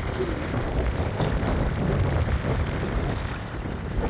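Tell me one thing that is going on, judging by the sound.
A fish splashes in shallow water close by.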